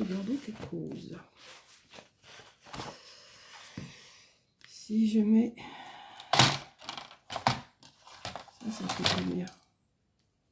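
Sheets of card rustle and flap as they are handled.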